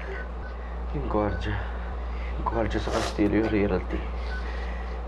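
A man speaks in a low, strained voice.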